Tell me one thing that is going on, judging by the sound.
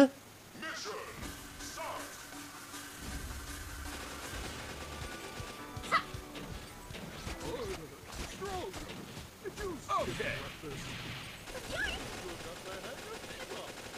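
Gunshots crack in quick bursts amid fiery blasts.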